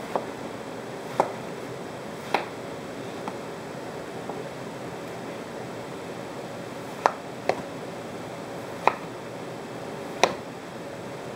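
A kitchen knife chops through a watermelon onto a cutting board.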